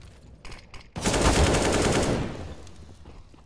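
A rifle fires a rapid burst of shots close by.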